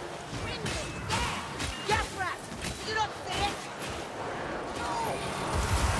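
Blades slash and thud against enemies in quick blows.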